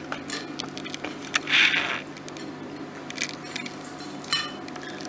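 Metal bowls and spoons clink against each other.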